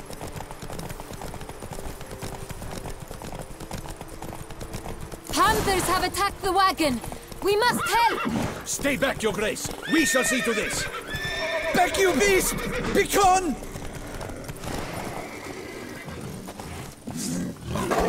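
Horse hooves thud along a dirt track at a gallop.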